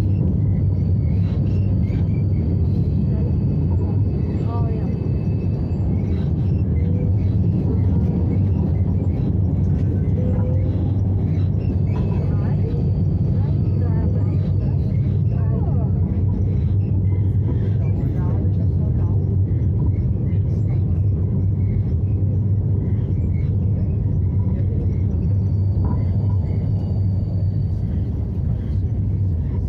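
A tram rumbles steadily along its rails, heard from inside.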